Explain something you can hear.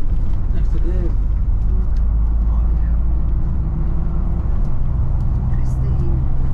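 Tyres roll on tarmac with a steady hum.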